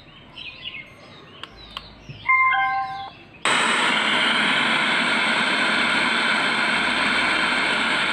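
Buttons on a portable speaker click when pressed.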